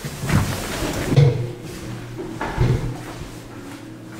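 An elevator door thuds shut.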